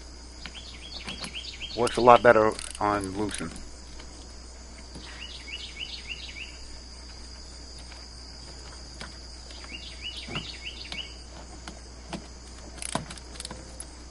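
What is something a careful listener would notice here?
Metal parts click and clink against a car battery.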